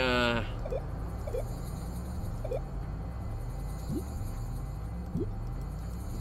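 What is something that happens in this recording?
Short soft electronic blips sound as a game menu steps through its entries.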